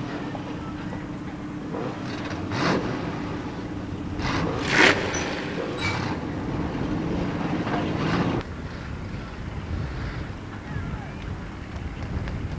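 Race car engines roar and rev on a track.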